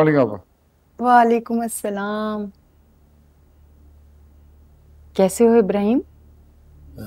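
An elderly woman speaks with feeling, close by.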